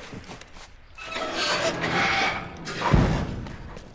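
A metal roller shutter rattles as it rolls down.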